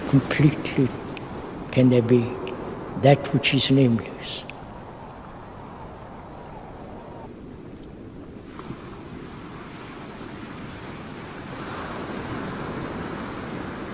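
Waves break and wash up onto a sandy shore.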